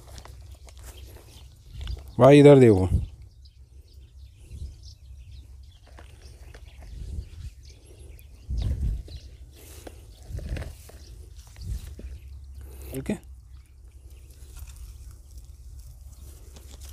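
Hands press and pat loose soil with soft rustling.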